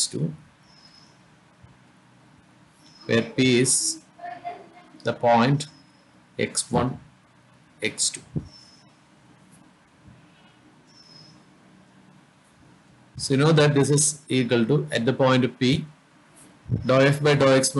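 A man speaks calmly into a close microphone, explaining in short bursts with pauses.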